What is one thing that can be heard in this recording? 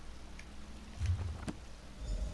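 A book closes with a soft thump.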